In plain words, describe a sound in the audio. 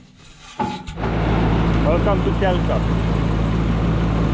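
A tractor engine runs with a steady loud rumble.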